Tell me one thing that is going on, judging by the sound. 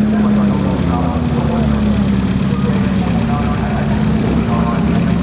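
A car engine rumbles steadily nearby as the car rolls slowly forward.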